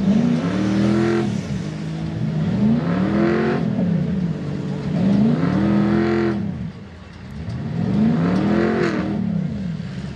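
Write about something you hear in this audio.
Tyres churn and splash through thick mud.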